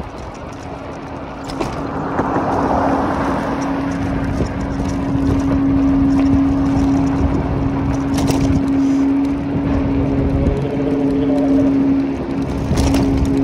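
Bicycle tyres rumble over rough, cracked pavement.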